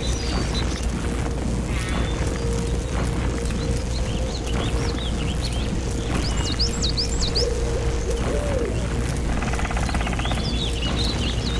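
A laser beam hums steadily.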